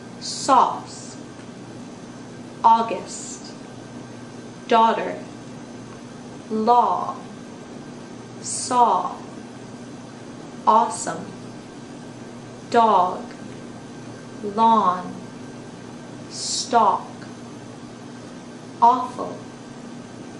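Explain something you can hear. A young woman speaks short words close by, pausing about every two seconds.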